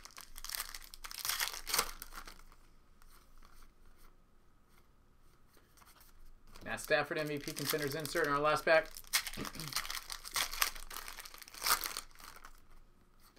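A foil card pack crinkles and tears.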